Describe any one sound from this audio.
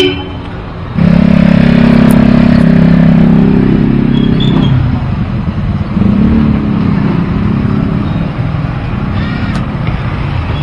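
An electrical unit hums steadily after it is switched on.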